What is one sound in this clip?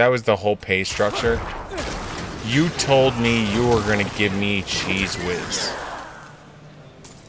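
Game combat sounds of spells and hits crackle and burst.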